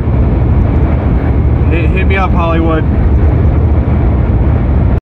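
A car's engine and road noise rumble steadily from inside the car.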